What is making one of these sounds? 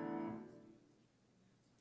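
A choir sings a final note in a reverberant hall.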